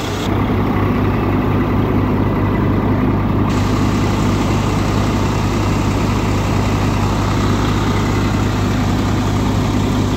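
A diesel tractor engine runs under load with a steady throb.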